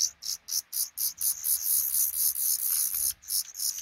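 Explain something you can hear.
A small bird's wings flutter briefly as it flies off.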